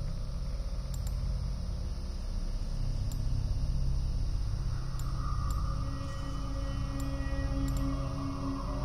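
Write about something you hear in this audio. Soft menu clicks sound at intervals.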